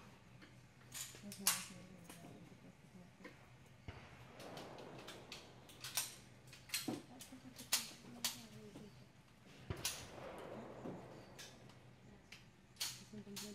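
.22 caliber semi-automatic pistols fire sharp shots under a covered range roof.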